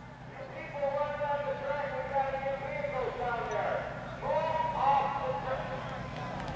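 A man shouts from a distance.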